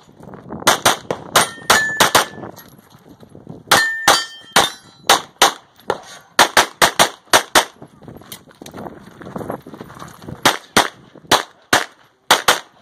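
A pistol fires rapid, sharp shots close by, in quick bursts outdoors.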